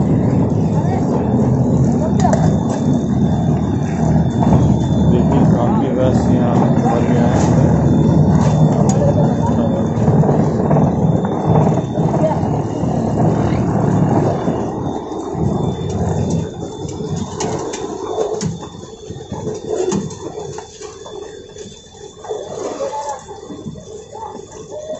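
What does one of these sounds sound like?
A sugarcane crusher grinds cane between its rollers with a heavy rumble.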